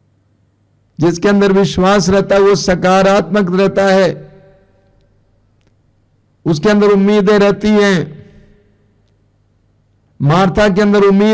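An elderly man sings into a microphone in long, held phrases with pauses between them.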